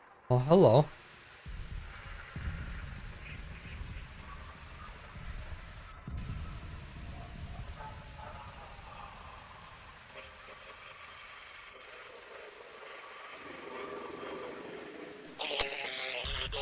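A radio crackles and hisses with static as it is tuned across stations.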